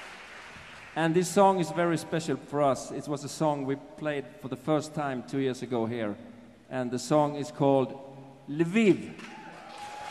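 A man sings through a microphone with a strong, held voice.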